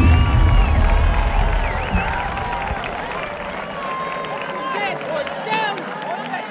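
A crowd cheers and whistles from stadium stands outdoors.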